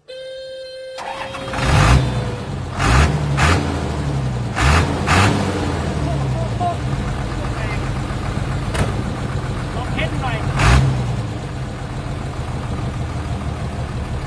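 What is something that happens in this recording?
A diesel truck engine starts and rumbles at idle.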